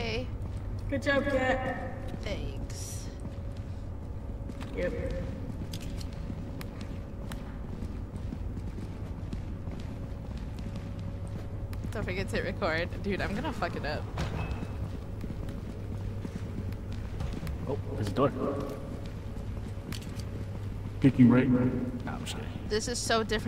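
A young woman talks with animation into a close microphone.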